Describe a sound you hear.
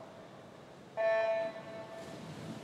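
An electronic start signal beeps loudly.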